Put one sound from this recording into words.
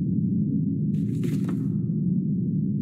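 Paper pages rustle as a notebook is opened.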